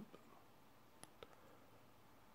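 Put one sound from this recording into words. Fingers press a wristwatch's buttons with small clicks.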